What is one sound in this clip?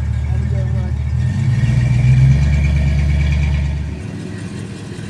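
A car engine rumbles deeply as a car drives slowly past.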